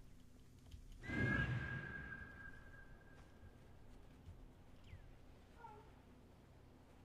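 An eagle gives a loud, shrill screech.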